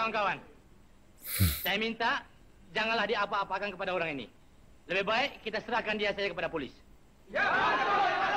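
A man speaks calmly and closely into a microphone, in short bursts.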